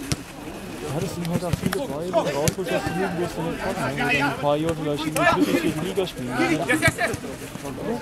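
Young men shout and call out to each other outdoors.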